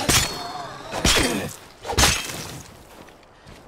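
Heavy blows land in a struggle.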